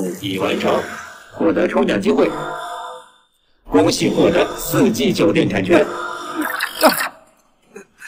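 A young man speaks clearly and with animation close to a microphone.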